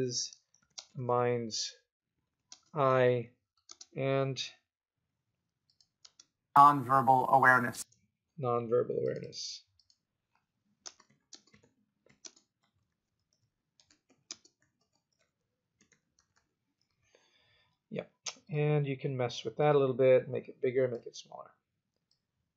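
A man speaks calmly into a close microphone, in short phrases with pauses.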